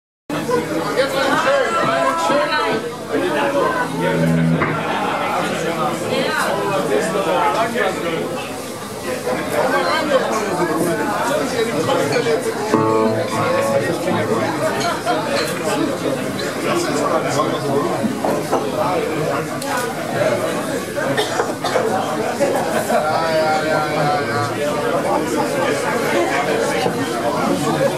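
A bass guitar plays a low line.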